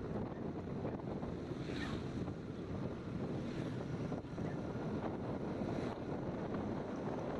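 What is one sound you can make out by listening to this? A motor scooter cruises along a road.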